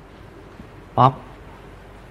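A teenage boy calls out a short word nearby.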